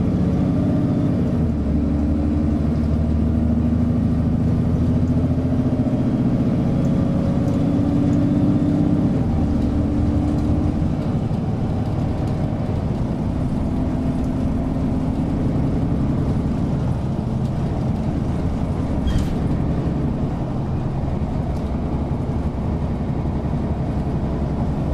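A bus rattles and vibrates over the road.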